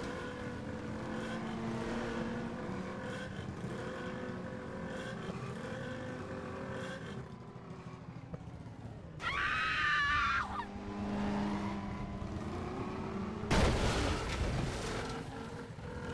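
A motorcycle engine hums steadily as the motorcycle rides along.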